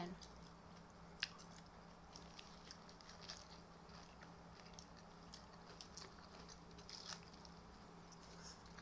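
A young woman chews and slurps food close by.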